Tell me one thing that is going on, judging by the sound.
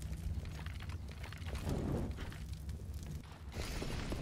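A fire roars and crackles close by.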